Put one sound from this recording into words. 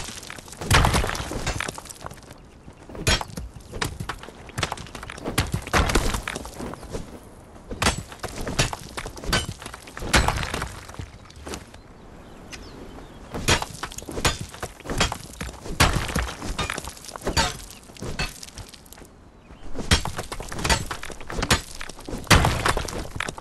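A pickaxe strikes stone with sharp, repeated knocks.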